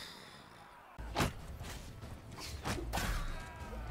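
Swords clash and clang in a noisy battle.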